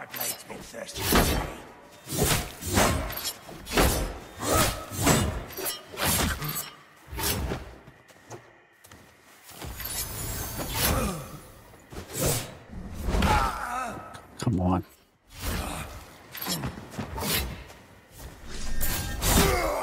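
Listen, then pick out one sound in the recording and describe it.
Blades slash and clash in a fight.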